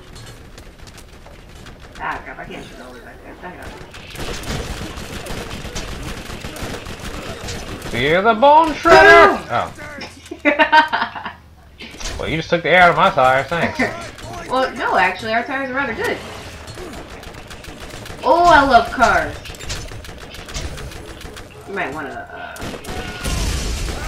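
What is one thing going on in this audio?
Gunfire from a video game crackles through loudspeakers.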